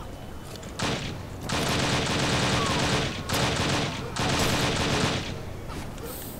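A submachine gun fires in rapid bursts, loud and close.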